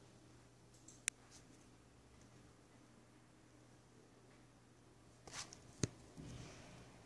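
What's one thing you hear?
A thin metal cover clicks and rattles as it is lifted.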